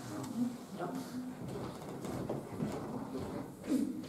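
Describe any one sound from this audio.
Footsteps shuffle across a wooden floor.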